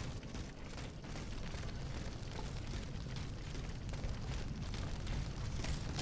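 Footsteps run over wet cobblestones.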